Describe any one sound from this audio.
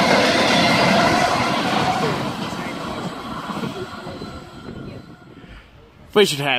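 A freight train rumbles away and fades into the distance.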